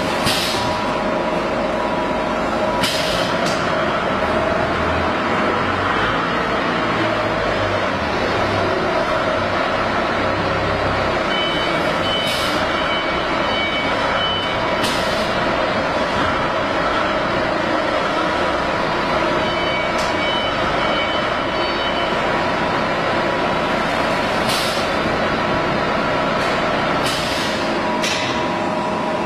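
A sealing mechanism clicks and hisses now and then.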